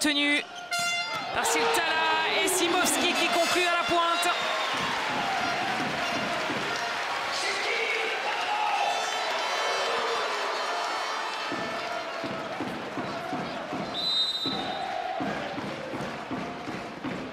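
A large crowd cheers and shouts in an echoing sports hall.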